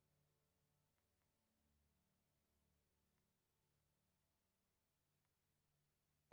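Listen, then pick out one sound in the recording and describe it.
A computer mouse clicks softly a few times.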